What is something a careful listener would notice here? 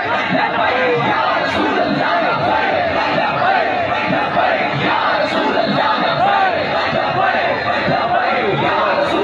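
A large crowd of men cheers and chants loudly nearby.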